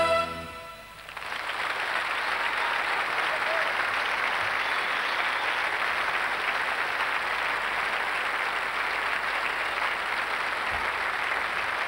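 A large crowd applauds and cheers in a big hall.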